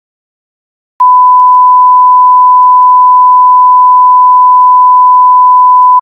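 A steady, loud test tone sounds.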